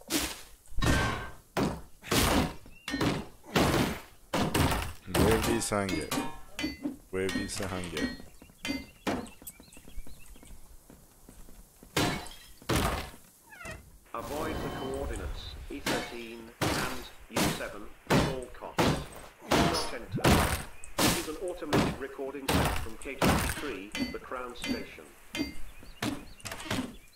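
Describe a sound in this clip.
Sharp thuds of blows land again and again in quick succession.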